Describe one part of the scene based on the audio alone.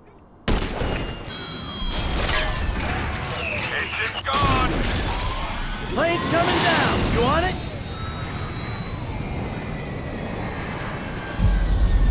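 A jet engine roars and sputters.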